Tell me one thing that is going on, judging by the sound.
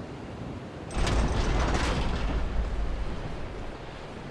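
A heavy gate grinds and rumbles open.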